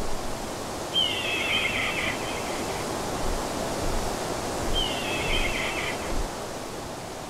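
A hawk cries out with sharp calls.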